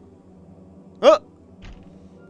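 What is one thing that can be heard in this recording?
A drawer slides open with a knock.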